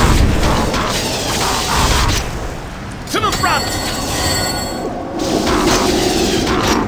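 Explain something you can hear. Weapons clash in a fight.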